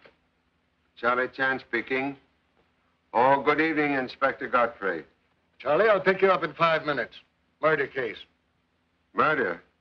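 A middle-aged man speaks into a telephone in short, firm phrases.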